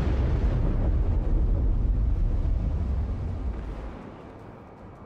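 Heavy guns boom with a deep, rolling rumble.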